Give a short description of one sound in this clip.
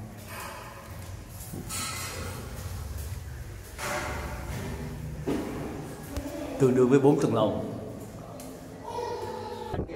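Footsteps climb a stairway.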